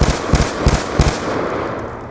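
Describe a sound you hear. A rifle fires a quick burst of loud gunshots that echo away.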